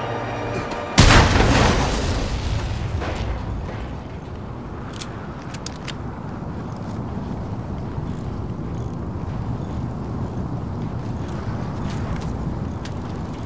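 Flames roar and crackle steadily.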